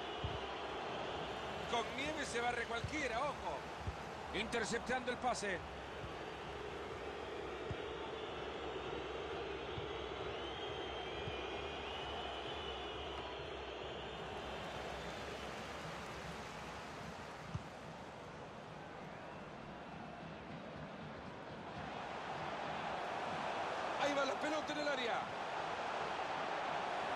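A large stadium crowd murmurs and cheers.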